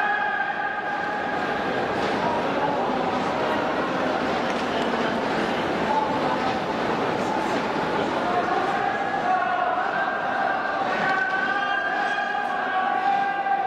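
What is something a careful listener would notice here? A large crowd cheers and chants loudly in a big echoing stadium.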